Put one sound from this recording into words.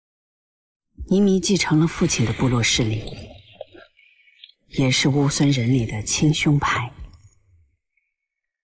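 A man speaks in a low, serious voice.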